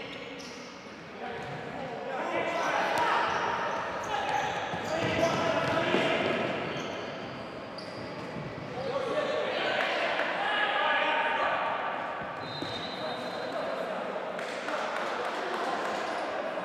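A ball thuds as players kick it.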